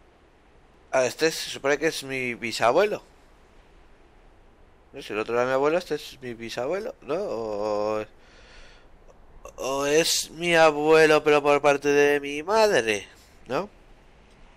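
A man speaks calmly, in several short bursts, close up.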